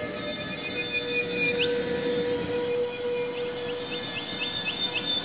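A steam locomotive chugs slowly.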